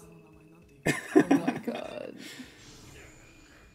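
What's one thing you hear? A man laughs heartily close to a microphone.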